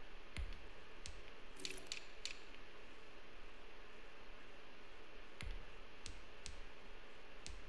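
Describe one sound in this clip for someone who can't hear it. Short menu clicks sound as a selection moves up and down a list.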